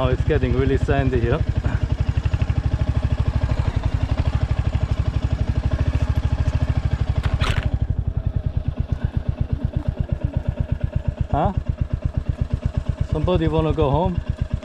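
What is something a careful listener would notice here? A motorcycle engine thumps steadily at low revs.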